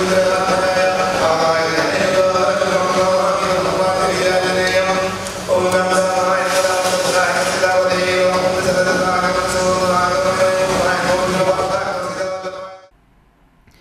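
A man sings a chant into a microphone in a steady, ringing voice.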